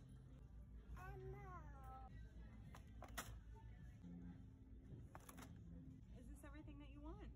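A woman talks close by in a bright, sing-song voice.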